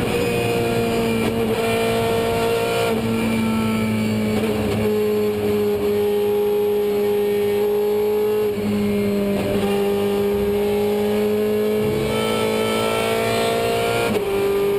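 A race car engine roars loudly from inside the cabin, its pitch rising and dropping with each gear change.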